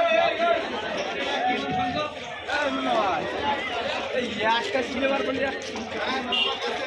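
Several men talk nearby with animation, their voices overlapping.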